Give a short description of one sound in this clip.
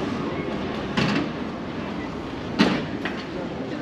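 A stroller's wheels rattle over cobblestones.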